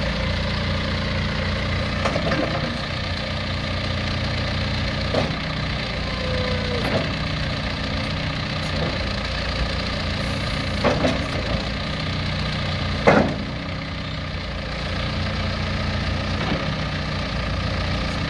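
A diesel engine idles with a steady low rumble.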